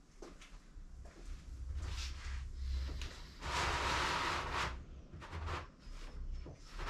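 A heavy tray rumbles as it slides along rollers.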